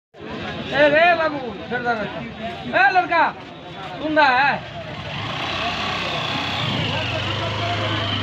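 A crowd of people murmurs in the background.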